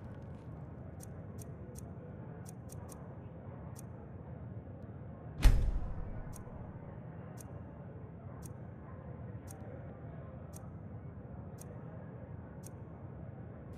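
Soft menu clicks tick one after another.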